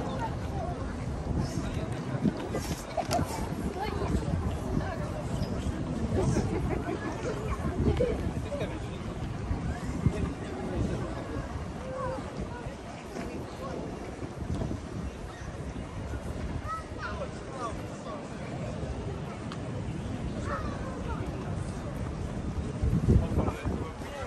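Wind blusters outdoors.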